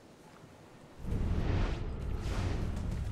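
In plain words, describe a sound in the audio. A body plunges into water with a deep, rushing underwater rumble.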